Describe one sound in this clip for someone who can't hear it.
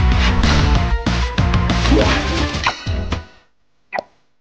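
Loud video game music and battle sound effects play, then stop.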